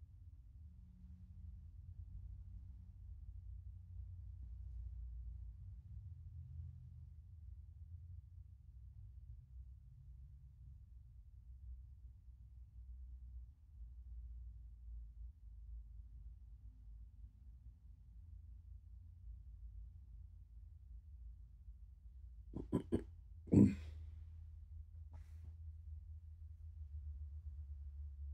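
A cat purrs softly and steadily close by.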